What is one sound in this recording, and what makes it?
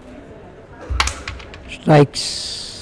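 Wooden coins clatter and click across a board.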